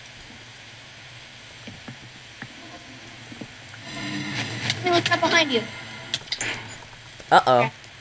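Flames crackle softly.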